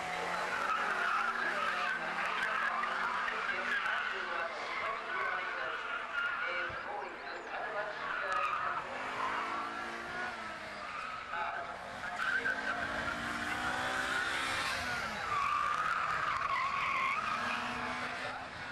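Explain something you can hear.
Tyres squeal on tarmac as a car slides.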